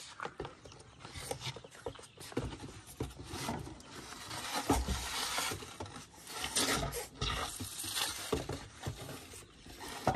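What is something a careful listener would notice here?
A cardboard box rustles and scrapes as it is handled.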